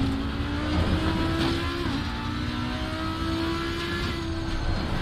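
A racing car engine roars at high revs, shifting up through the gears.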